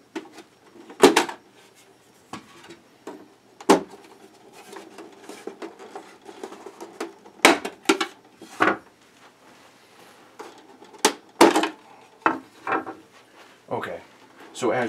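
Plastic panels click and clatter as they are pulled off a toy.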